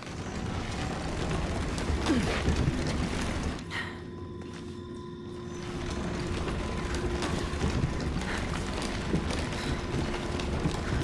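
A heavy wooden cart rolls and rumbles.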